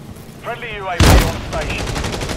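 A loud blast booms.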